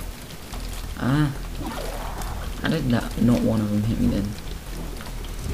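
Small watery shots pop and splash repeatedly.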